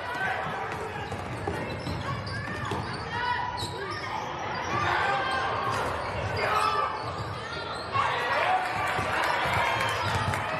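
A crowd in a gym cheers and shouts.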